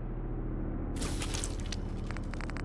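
Meat sizzles briefly on a cooking fire.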